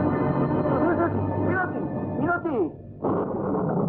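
A man cries out in anguish.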